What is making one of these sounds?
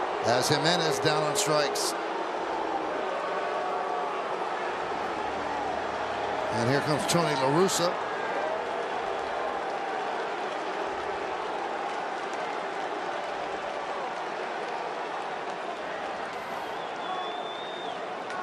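A stadium crowd murmurs steadily outdoors.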